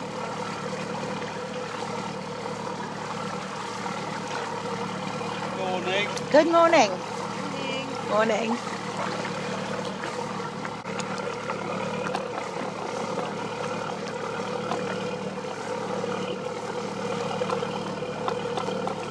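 A paddle splashes softly in the water.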